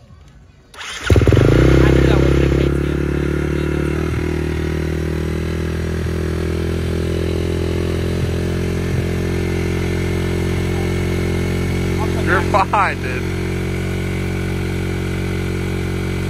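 A dirt bike engine sputters to life and idles loudly with a steady rumble.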